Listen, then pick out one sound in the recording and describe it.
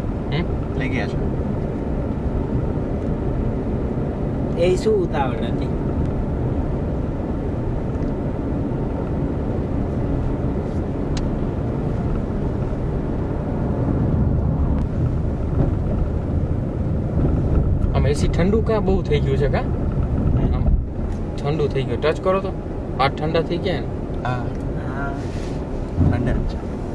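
A car engine hums steadily inside a moving car.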